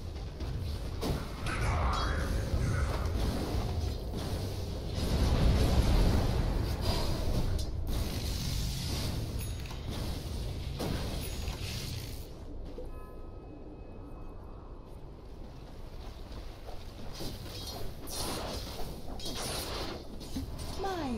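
Game spell effects and impacts crackle and boom during a fight.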